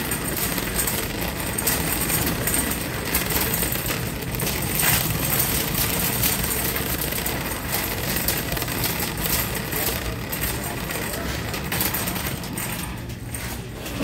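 A shopping cart rattles as it rolls across a hard floor.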